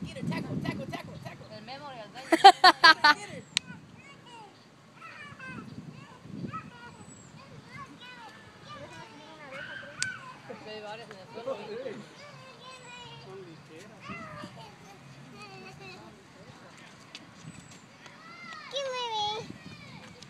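Young children shout and squeal while playing outdoors nearby.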